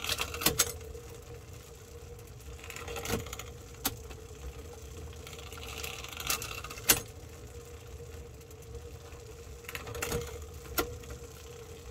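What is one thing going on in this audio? A metal wrench clicks and ticks against a bolt, now and then.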